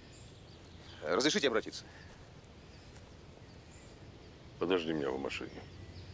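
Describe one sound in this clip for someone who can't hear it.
Men speak calmly nearby, outdoors.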